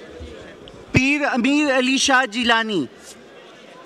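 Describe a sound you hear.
A man speaks loudly close to a microphone.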